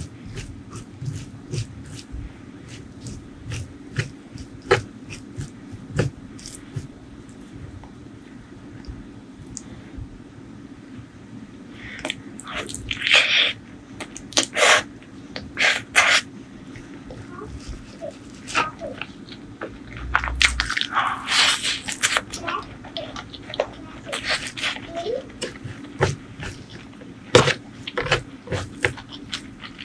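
Fingers rustle and crunch through dry crispy food close up.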